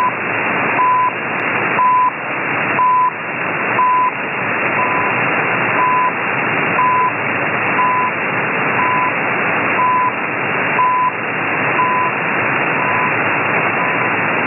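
A radio time signal beeps once every second.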